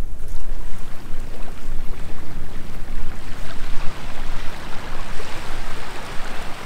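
Small waves lap gently at a sandy shore.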